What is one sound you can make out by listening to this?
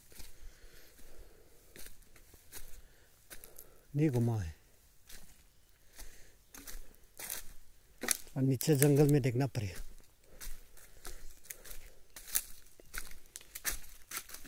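Footsteps crunch through dry leaves on the ground.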